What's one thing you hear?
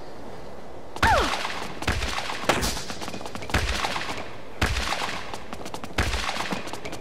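A tennis racket strikes a ball with sharp thwacks.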